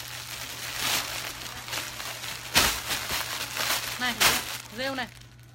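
Plastic wrapping rustles and crinkles as clothes are handled.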